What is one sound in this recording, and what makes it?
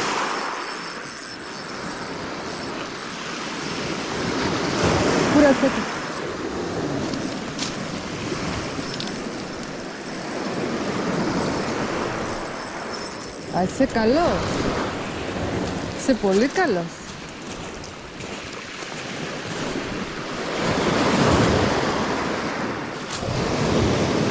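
Waves wash onto a pebble beach and draw back over the stones.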